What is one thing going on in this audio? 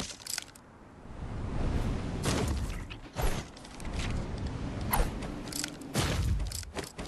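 Wind rushes loudly during a glide through the air.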